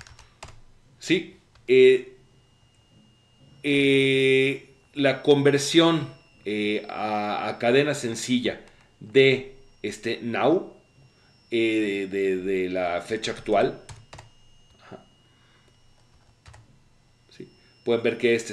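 A man speaks calmly and thoughtfully into a close microphone.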